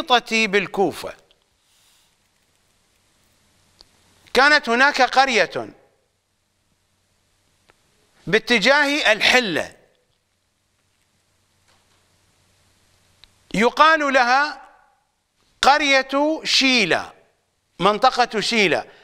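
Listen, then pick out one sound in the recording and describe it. A middle-aged man speaks with animation into a close microphone, in bursts separated by pauses.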